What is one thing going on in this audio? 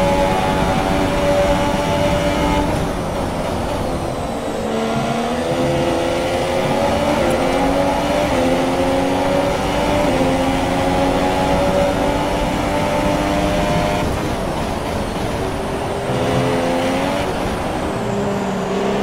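A Formula One car's engine drops in pitch as it downshifts under braking.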